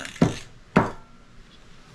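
A hollow plastic ball knocks against a table.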